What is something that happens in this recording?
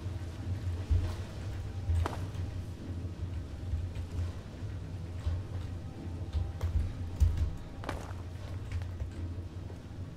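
Footsteps fall on stone in a large echoing hall.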